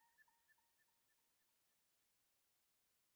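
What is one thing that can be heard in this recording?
Short electronic notes play in a quick, even rhythm and fade away.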